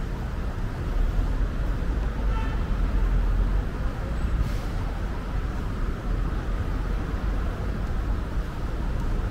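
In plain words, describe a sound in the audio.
A car drives slowly past close by.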